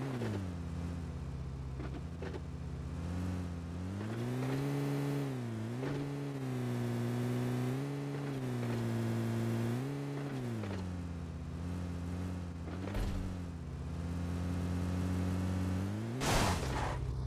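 An off-road vehicle's engine rumbles and revs up and down.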